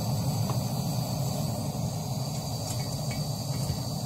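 A metal kettle clanks onto a stove.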